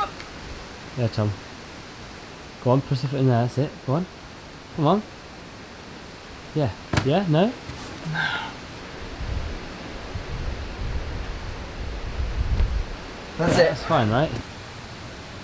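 A young man grunts and groans with effort close by.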